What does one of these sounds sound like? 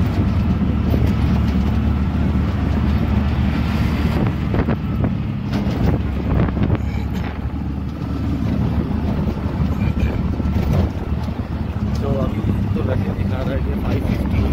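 A small engine rattles and hums steadily up close.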